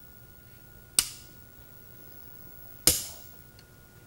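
A wooden game piece clacks sharply onto a board.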